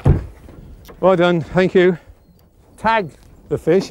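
A man speaks loudly nearby, outdoors.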